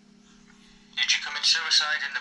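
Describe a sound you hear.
A young man speaks loudly and close by.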